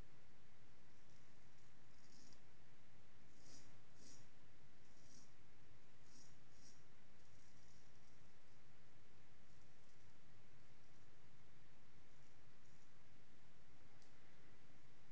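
A razor scrapes softly over stubble in short strokes.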